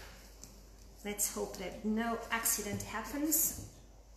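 A young woman speaks calmly and close by into a microphone.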